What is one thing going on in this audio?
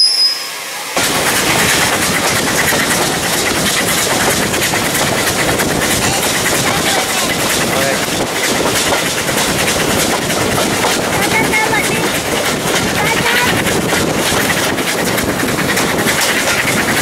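A train rumbles and clatters steadily along the track.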